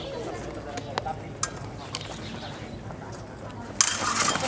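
Swords clash and clatter sharply.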